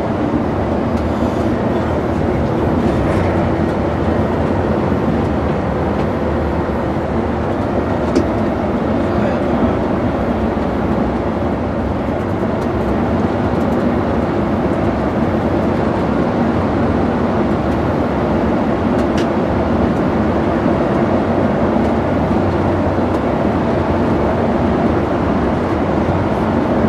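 Tyres hum on smooth asphalt.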